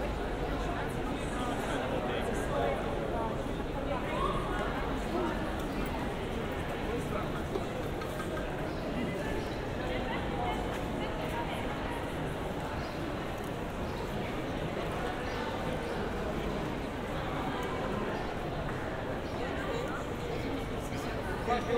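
Footsteps shuffle on stone paving.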